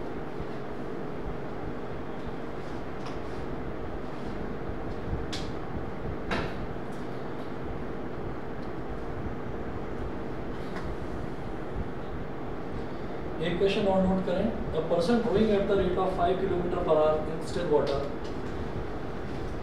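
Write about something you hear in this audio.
Pages of a book rustle as a man turns them.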